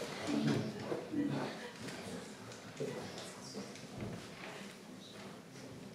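Two acoustic guitars play together.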